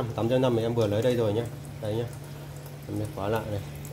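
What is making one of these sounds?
A thin stream of water splashes into a metal sink.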